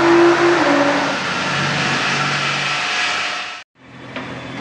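A sports car engine roars loudly at high revs, then cuts off abruptly.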